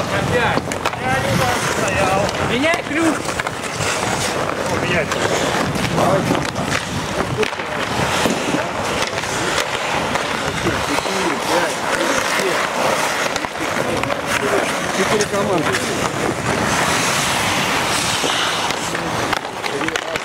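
Hockey sticks clack against the puck and the ice.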